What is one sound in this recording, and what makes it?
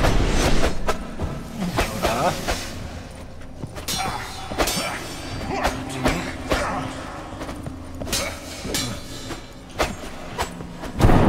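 Swords swing and whoosh through the air.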